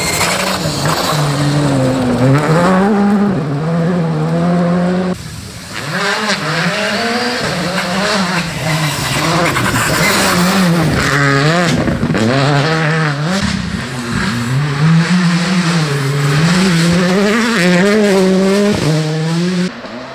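Gravel and stones spray from tyres on a dirt road.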